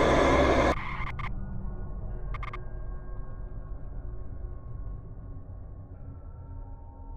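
A car engine hums low and steady as the car drives along.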